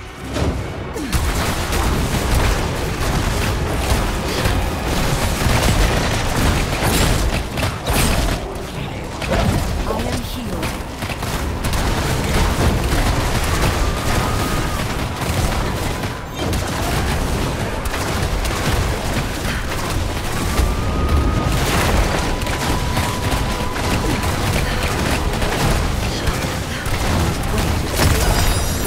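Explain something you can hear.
Magic spells whoosh and explode in bursts.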